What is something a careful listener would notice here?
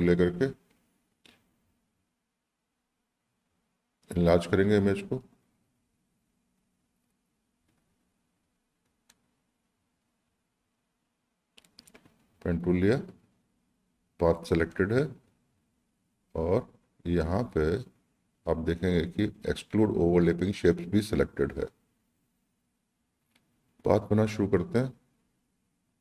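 A middle-aged man talks calmly into a microphone, in short bursts with pauses.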